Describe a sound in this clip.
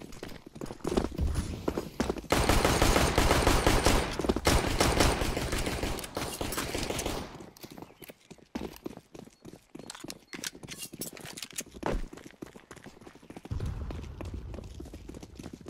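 Footsteps tap quickly on hard stone.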